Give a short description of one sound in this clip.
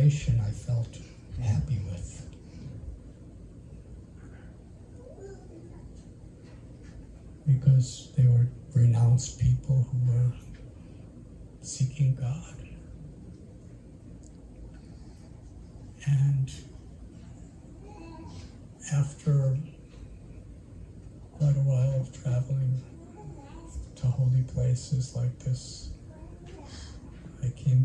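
An elderly man speaks calmly into a close microphone, in slow phrases with pauses.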